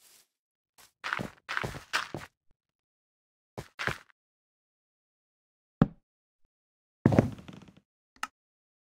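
Blocks are placed with short, dull thuds.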